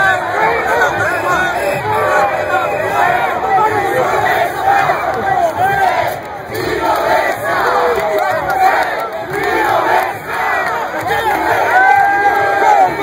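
A dense crowd of men and women shouts and cheers loudly all around, close by.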